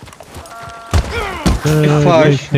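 A body thuds to the ground.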